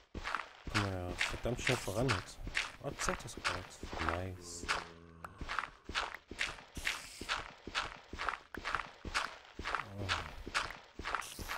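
A young man talks animatedly and close to a microphone.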